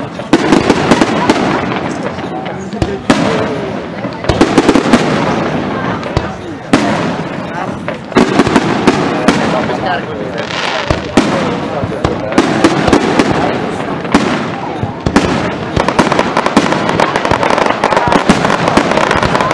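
Fireworks burst with loud, rapid booms and bangs.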